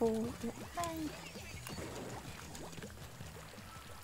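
A cartoonish splatting sound plays as ink is sprayed.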